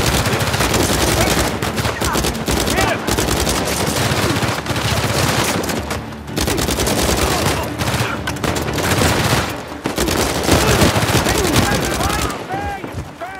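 Rapid automatic gunfire rattles loudly.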